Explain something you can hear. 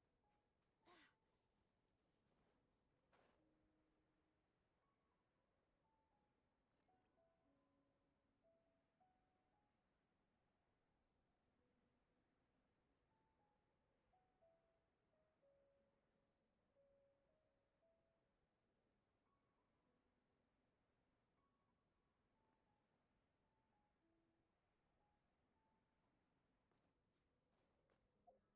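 Soft game music plays a slow, gentle melody.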